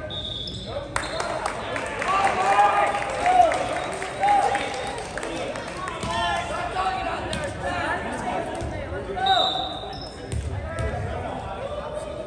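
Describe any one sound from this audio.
Spectators and players cheer and shout in an echoing gym.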